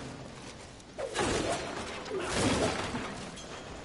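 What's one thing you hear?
Blades clash and strike in a fierce fight.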